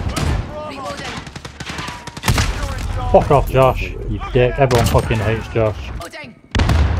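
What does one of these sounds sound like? A video game pistol fires shots.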